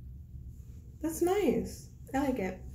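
A young woman speaks briefly, close to the microphone.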